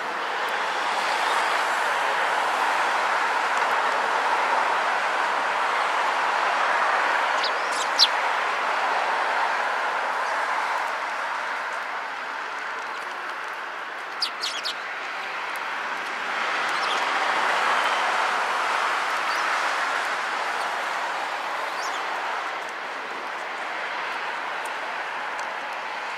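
Small beaks tap and peck at a wooden rail.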